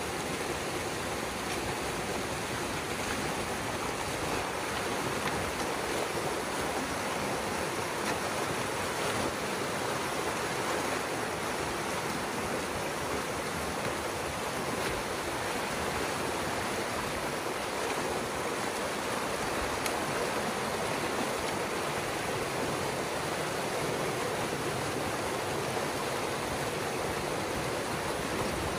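Water rushes and gurgles steadily over a small dam.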